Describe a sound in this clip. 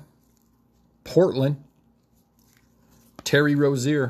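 Trading cards slide and rustle softly in gloved hands.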